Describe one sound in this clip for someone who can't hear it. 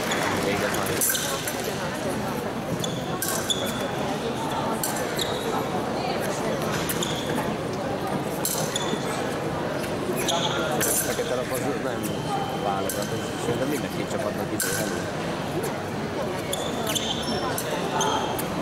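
Fencing blades click and clash together.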